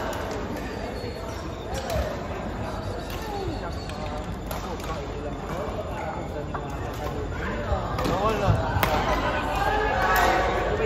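Voices of young people chatter across a large echoing hall.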